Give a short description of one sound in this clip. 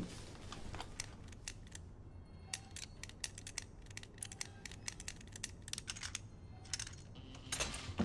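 Dials of a combination lock click as they turn.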